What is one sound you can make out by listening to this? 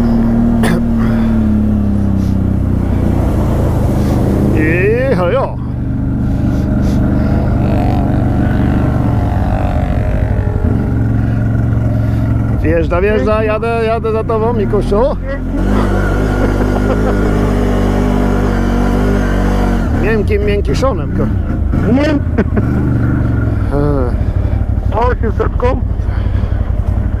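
A quad bike engine rumbles steadily close by.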